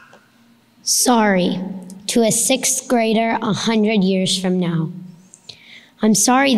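A young girl reads aloud into a microphone.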